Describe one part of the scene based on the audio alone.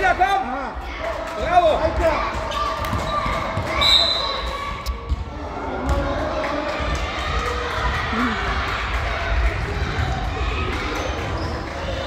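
Sneakers squeak on a hall floor as children run.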